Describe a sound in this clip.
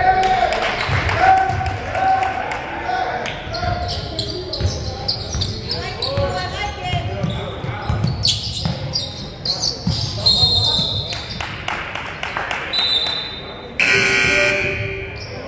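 Young men call out across an echoing gym.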